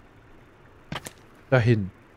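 A heavy stone block thuds into place on rock.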